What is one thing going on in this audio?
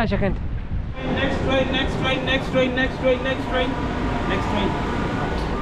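A door warning chime beeps repeatedly as train doors prepare to close.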